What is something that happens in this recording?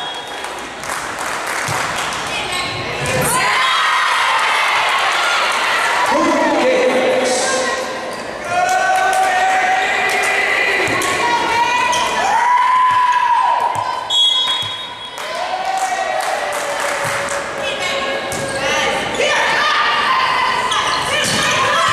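Young women shout and cheer in an echoing gym.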